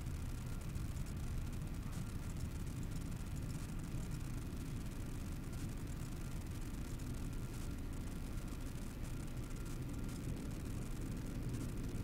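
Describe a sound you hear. A deep, low space rumble drones steadily.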